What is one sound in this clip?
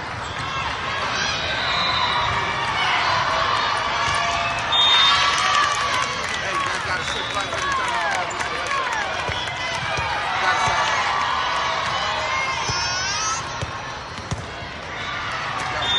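A volleyball thumps against hands and the floor.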